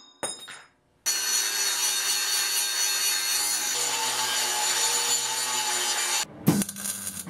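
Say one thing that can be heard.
A grinder grinds metal with a loud, steady hiss.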